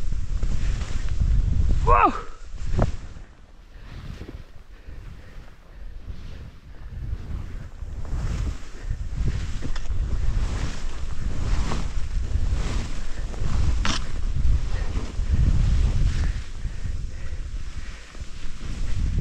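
Skis hiss and swish through deep powder snow.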